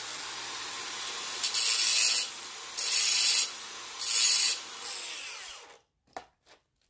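A power tool whirs loudly in short bursts.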